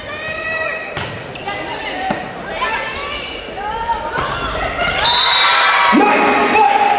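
A volleyball is struck hard, with sharp thuds echoing in a large hall.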